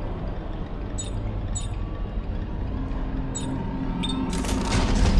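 Short electronic beeps sound as a menu selection moves.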